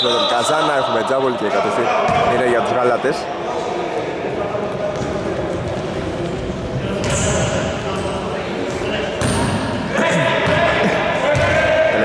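Sneakers squeak sharply on a wooden court in an echoing hall.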